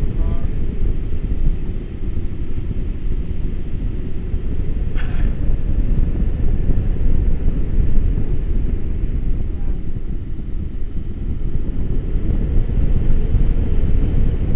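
Strong wind roars steadily past a microphone outdoors.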